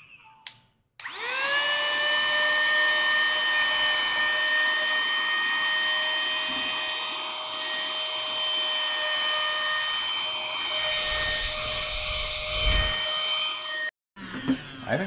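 A small handheld vacuum whirs with a steady high whine.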